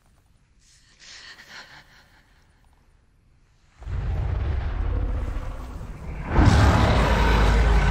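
A young woman grunts and gasps for breath close by.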